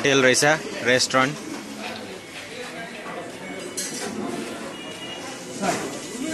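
Metal pots and utensils clatter.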